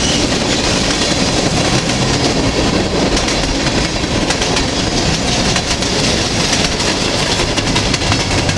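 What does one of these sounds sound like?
A freight train rushes past at speed with a heavy rumble.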